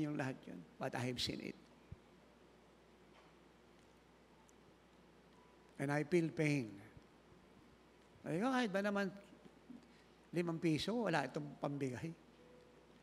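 An elderly man speaks calmly through a microphone in a large hall, with pauses between phrases.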